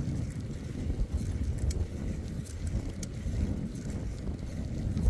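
Bicycle tyres hum and crunch over a rough paved path.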